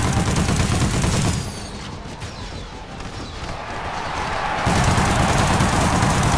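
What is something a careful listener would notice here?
Heavy gunfire blasts in rapid bursts.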